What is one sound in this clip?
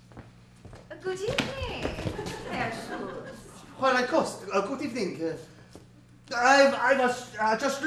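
A man speaks loudly and theatrically in a large room.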